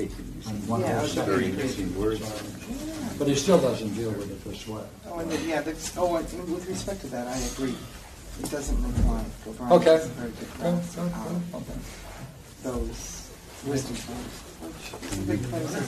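An elderly man speaks calmly and at length in a room with a slight echo.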